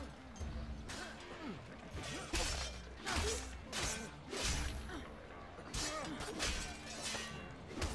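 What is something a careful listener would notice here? Swords clash and strike during a fight.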